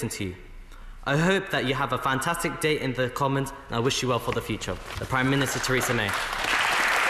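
A young man speaks firmly into a microphone in a large hall.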